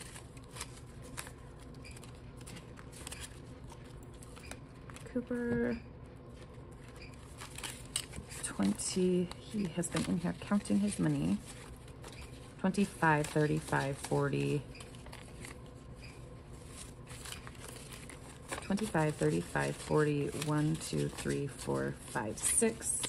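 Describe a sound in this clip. Paper banknotes rustle and crinkle as they are handled and counted.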